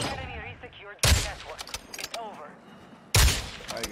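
A rifle fires sharp, loud single shots.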